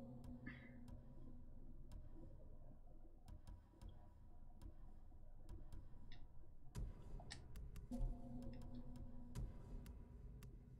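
Menu clicks tick sharply now and then.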